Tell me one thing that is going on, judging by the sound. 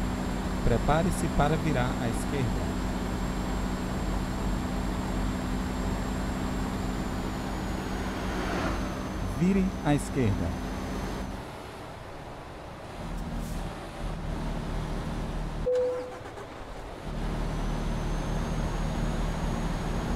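A diesel semi-truck engine drones while cruising.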